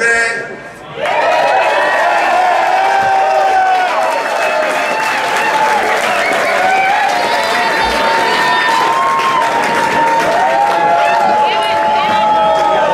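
Electric guitars play sustained, bending lead lines.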